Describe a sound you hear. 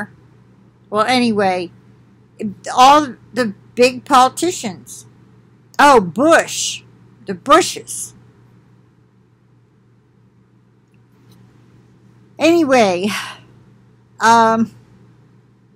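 An elderly woman speaks calmly into a computer microphone, in short bursts with pauses.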